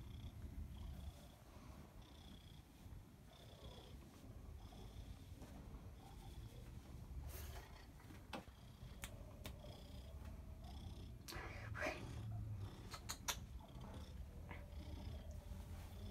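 A cat purrs close by.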